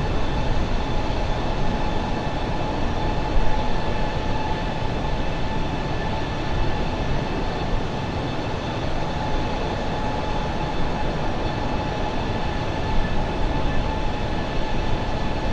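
Jet engines roar and whine steadily.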